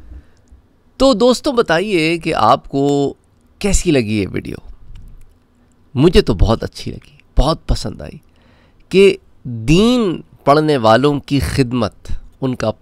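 A man speaks with animation into a microphone close by.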